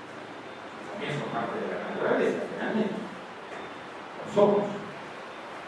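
An elderly man speaks into a microphone through a loudspeaker in a room with some echo.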